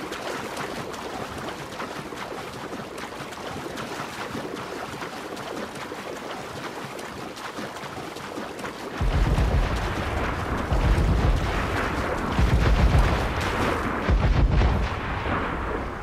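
Waves wash and splash around a swimmer.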